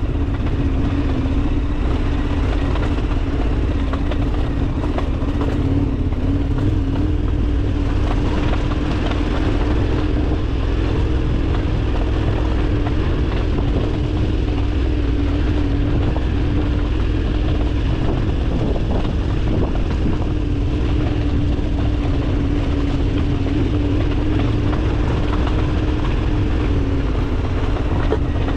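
Wind rumbles loudly against the rider outdoors.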